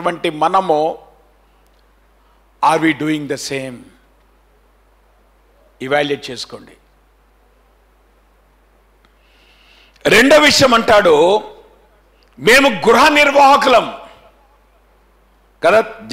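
A middle-aged man preaches into a microphone with animation, in short bursts separated by pauses.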